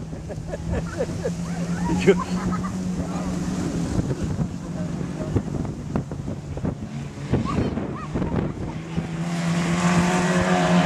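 Stock car engines roar as the cars race around a dirt track.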